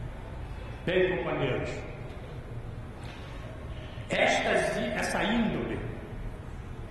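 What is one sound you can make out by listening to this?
An elderly man speaks firmly into a microphone, with pauses.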